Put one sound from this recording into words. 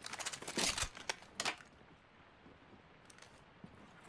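A heavy door slides open with a mechanical whir.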